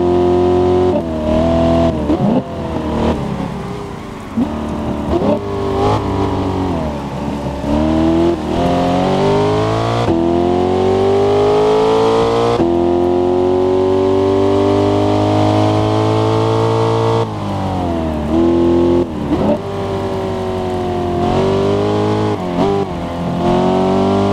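A sports car engine roars at high revs, rising and falling as the gears shift.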